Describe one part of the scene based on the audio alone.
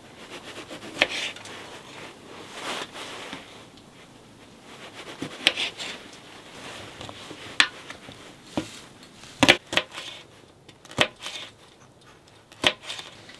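A knife taps sharply on a wooden cutting board as vegetables are sliced.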